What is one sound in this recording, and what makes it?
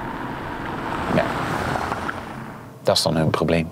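A car drives slowly over cobblestones.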